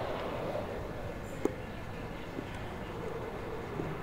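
Water flows and trickles softly.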